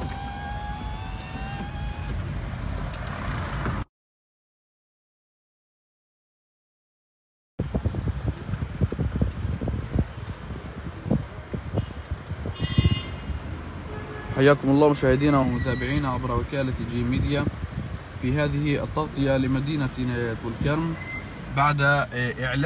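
A car engine hums steadily from inside a moving car.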